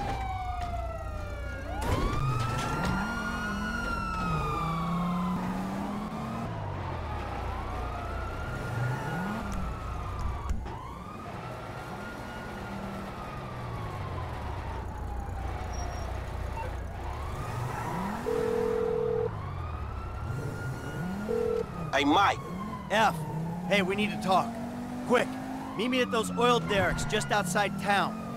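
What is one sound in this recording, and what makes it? A car engine hums and revs while driving.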